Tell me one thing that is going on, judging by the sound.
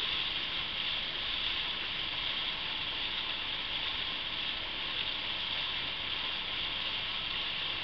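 Water rushes and splashes steadily past a moving boat.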